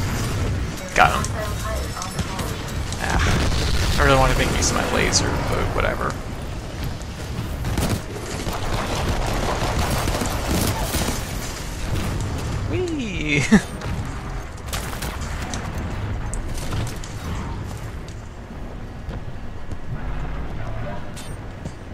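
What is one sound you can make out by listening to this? Rapid gunfire crackles and booms.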